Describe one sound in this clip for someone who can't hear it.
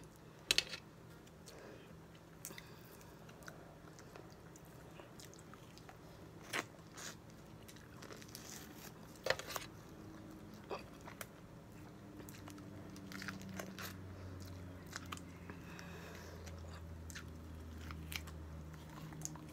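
Crisp food crunches and crackles in bites close by.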